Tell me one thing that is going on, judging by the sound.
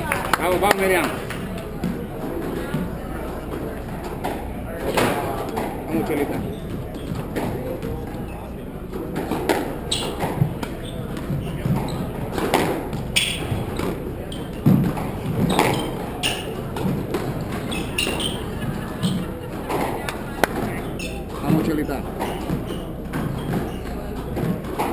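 A squash ball smacks off rackets and walls, echoing in a large hard-walled court.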